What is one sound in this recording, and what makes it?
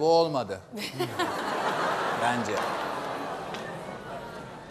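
A crowd of people laughs.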